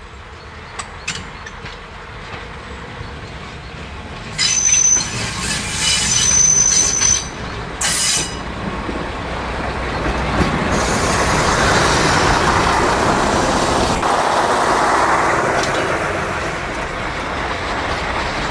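A railcar engine rumbles as it approaches and passes close by.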